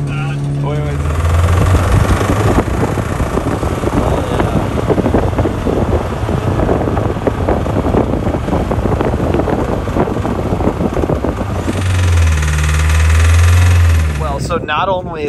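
An engine revs loudly and roars.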